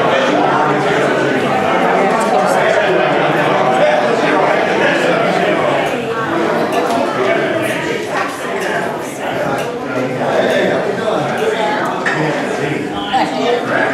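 A crowd of men and women chatter at once in a room with some echo.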